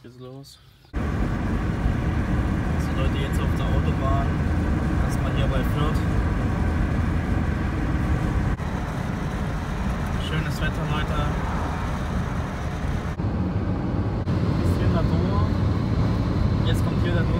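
A car drives at motorway speed, with tyre and road noise heard from inside the car.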